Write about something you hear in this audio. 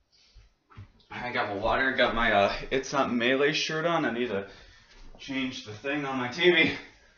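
A young man talks loudly and animatedly close by.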